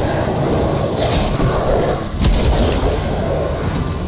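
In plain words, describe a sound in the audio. Flames roar in a burst.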